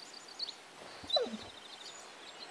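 A small dog yips once.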